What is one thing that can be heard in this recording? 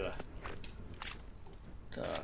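A pistol magazine clicks into place.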